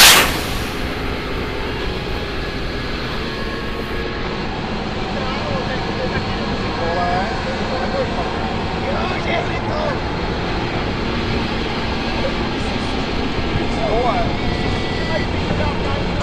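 A jet engine drones in the distance as a plane passes low.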